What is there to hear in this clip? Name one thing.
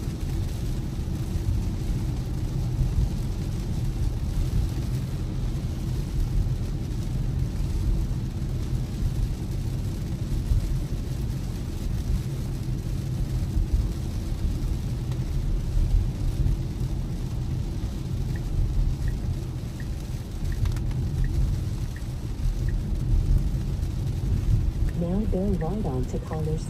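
Rain patters on the windshield.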